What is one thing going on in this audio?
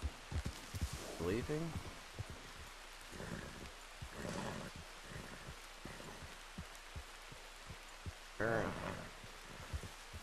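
A young man speaks with animation through a headset microphone.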